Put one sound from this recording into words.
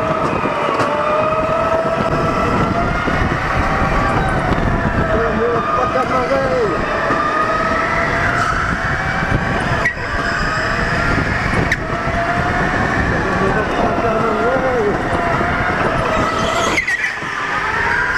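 Go-kart engines whine steadily, rising and falling in pitch as the karts speed up and slow down.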